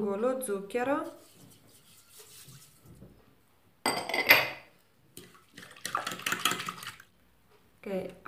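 A fork scrapes and clinks against a bowl.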